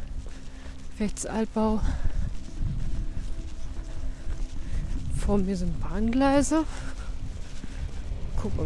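A woman speaks calmly close to the microphone, outdoors.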